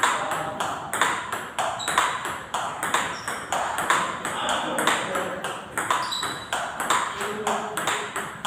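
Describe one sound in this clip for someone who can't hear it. A ping-pong ball clicks back and forth on paddles and a table in a quick, steady rally.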